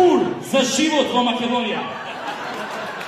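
A man speaks into a microphone.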